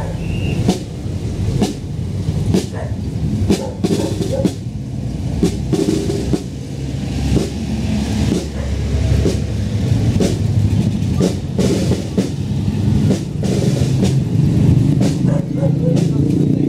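A bass drum booms in a steady marching beat.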